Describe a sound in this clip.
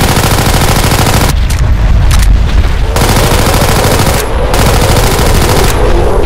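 Guns fire rapid bursts of shots.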